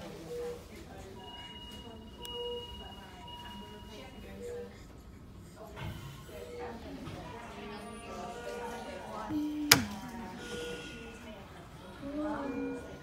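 A medical monitor beeps softly at a steady pace.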